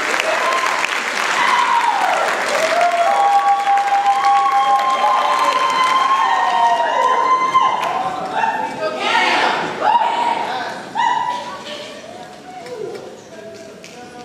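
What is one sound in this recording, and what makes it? A large choir of young women sings together in a big echoing hall.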